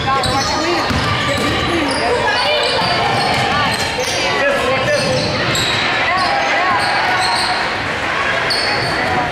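Young women call out to each other on the court.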